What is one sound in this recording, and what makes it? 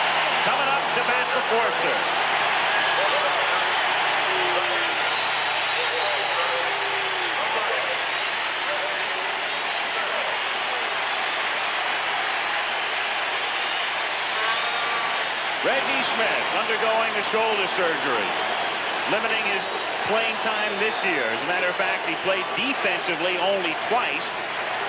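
A large stadium crowd cheers and roars loudly.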